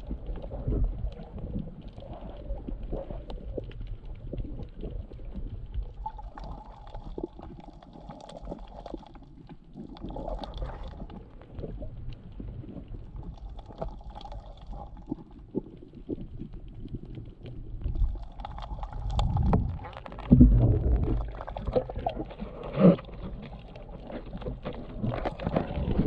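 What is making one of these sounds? Water rumbles and swirls, heard muffled from underwater.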